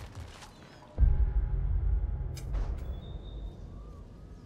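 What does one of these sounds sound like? A deep whooshing boom sounds as a menu opens.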